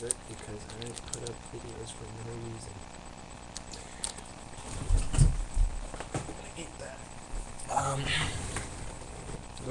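A young man speaks quietly and close to a microphone.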